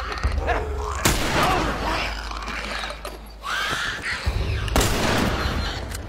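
Heavy blows land with dull thuds during a scuffle.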